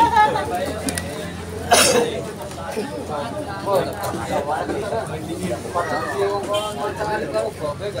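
A crowd of young women and girls chatter nearby outdoors.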